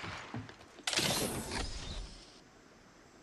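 A metal supply crate clanks open.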